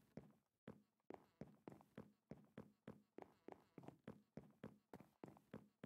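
Quick footsteps thud on a hard surface.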